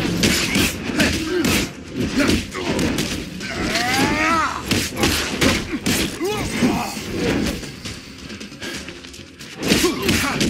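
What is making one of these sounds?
Heavy blows land with sharp, punchy impacts.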